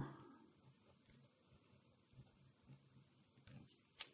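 A pen writes on paper.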